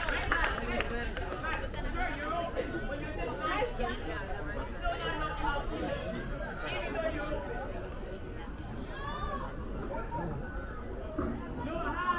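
Young women players shout and call to each other across an open field.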